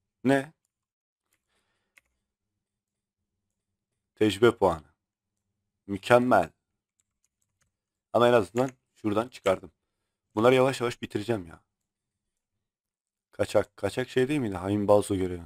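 A man talks close to a microphone, in short bursts with pauses.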